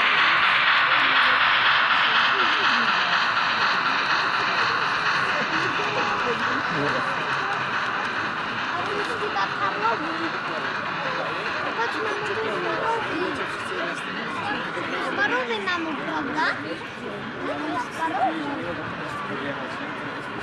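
A model train rumbles and hums along its track close by, fading as it moves away.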